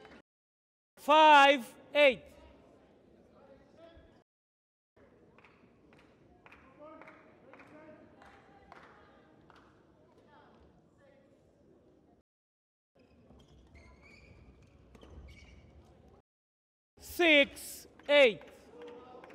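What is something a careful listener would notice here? Young women shout out loudly in an echoing hall.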